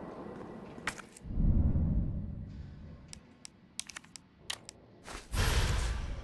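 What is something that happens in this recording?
Short menu clicks tick several times.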